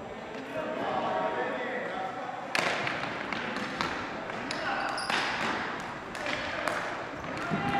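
Players' shoes squeak sharply on the floor.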